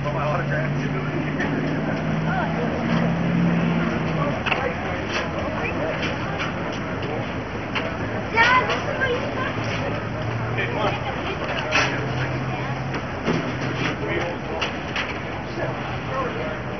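Two men talk casually nearby outdoors.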